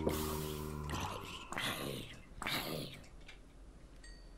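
Fire crackles as a creature burns.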